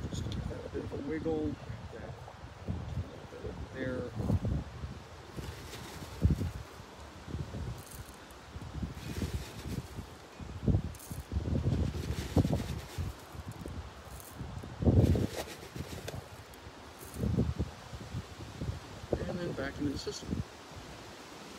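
Gloved hands press and rustle soil in a plant pot, with soft dull thumps.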